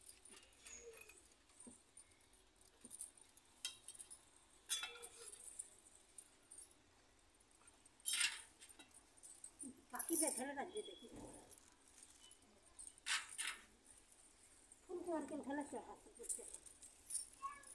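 Metal plates and bowls clink.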